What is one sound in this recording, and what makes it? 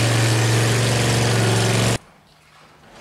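An engine idles with a low, steady hum.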